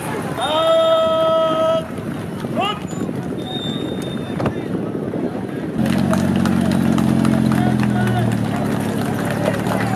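A car engine hums as a car rolls slowly past.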